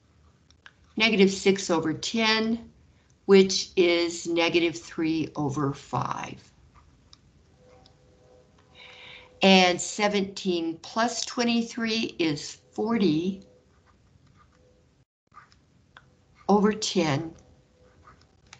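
A woman explains calmly into a microphone.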